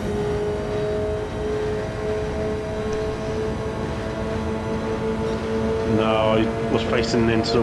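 A racing car engine drones steadily from inside the cockpit.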